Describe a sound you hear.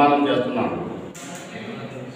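A man speaks into a microphone, reading out clearly.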